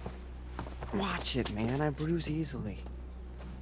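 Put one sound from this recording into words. A young man complains close by.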